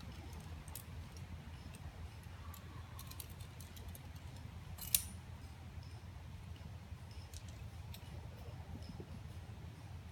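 Climbing gear clinks and rattles against rock.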